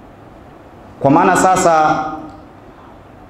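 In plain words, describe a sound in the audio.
A young man suddenly chants loudly into a microphone.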